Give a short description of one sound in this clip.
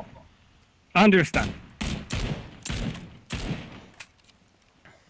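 A rifle fires sharp shots in quick bursts.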